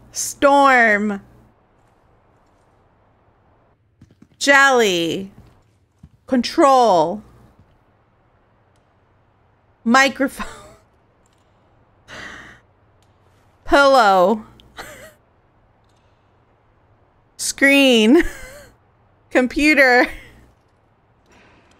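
A young woman talks animatedly into a close microphone in short bursts.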